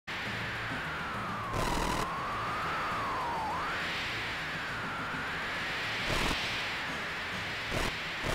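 A machine hums with a wavering whine.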